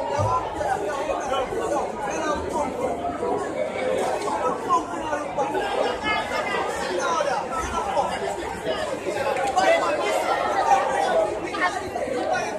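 Men and women in the crowd shout and call out excitedly.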